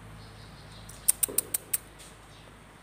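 Dog claws click and tap on a hard floor.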